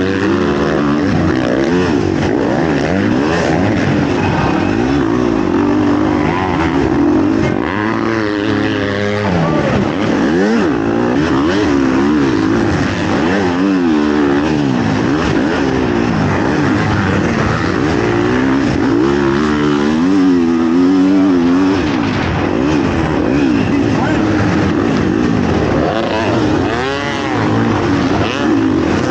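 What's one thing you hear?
A dirt bike engine revs loudly up close, rising and falling in pitch throughout.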